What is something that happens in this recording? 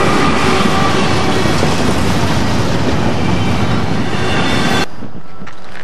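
Double-stack freight cars rumble and clatter past on the rails.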